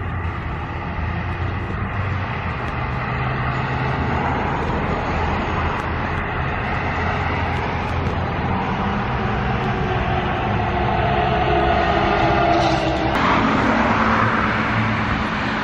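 An electric bus hums as it drives toward and past.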